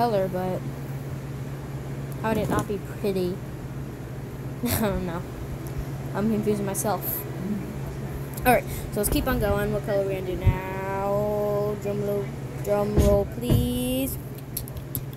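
A young girl talks close by in an animated voice.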